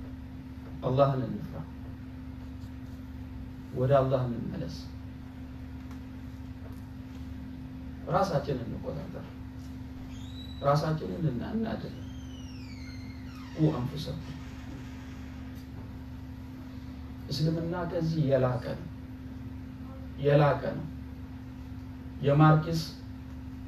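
A middle-aged man speaks calmly in short phrases with long pauses, close by.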